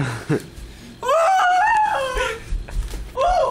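A young woman shrieks and laughs loudly close by.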